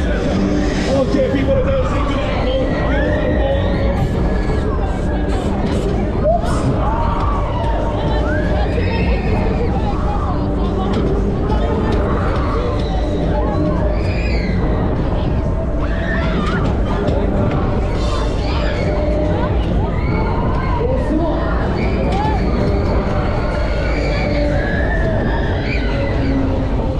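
Riders scream and shout as the ride swings.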